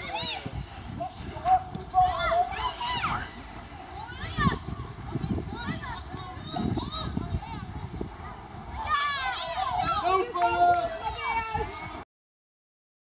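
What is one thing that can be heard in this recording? Children shout and call out across an open field outdoors.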